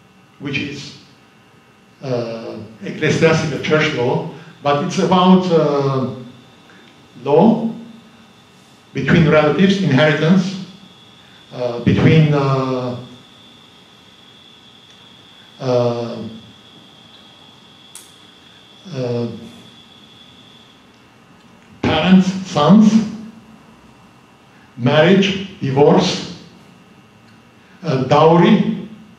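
A middle-aged man speaks calmly into a microphone, heard through loudspeakers in a large room, with pauses between phrases.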